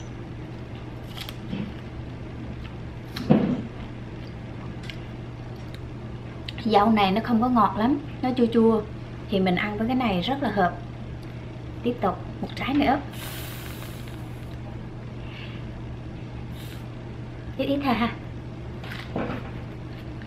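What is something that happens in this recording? A woman bites and chews a juicy strawberry close to a microphone.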